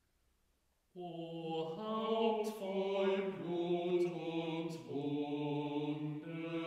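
Several men sing a hymn together in a large echoing hall.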